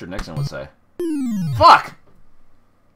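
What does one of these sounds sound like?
An arcade quiz game sounds a falling buzz for a wrong answer.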